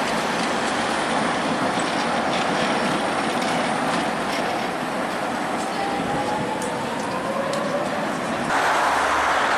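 A tram rolls by on its rails.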